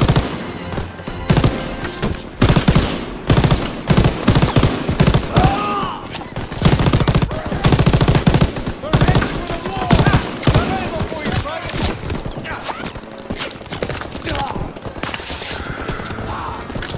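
Gunfire crackles and explosions boom in the distance.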